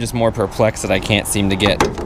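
A fuel cap clicks open.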